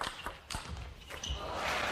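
A ball clicks back and forth off paddles and a table.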